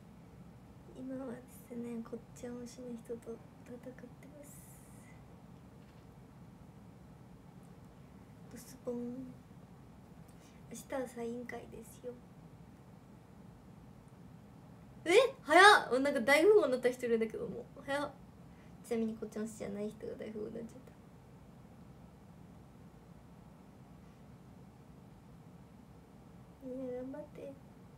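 A young woman talks close to a microphone.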